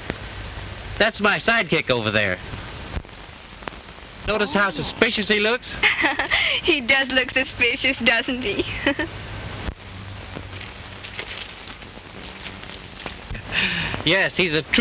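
A man talks cheerfully, heard up close.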